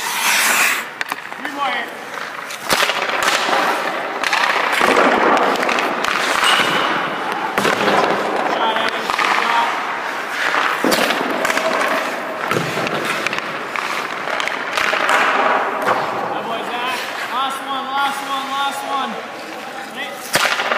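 Skates scrape and carve across ice.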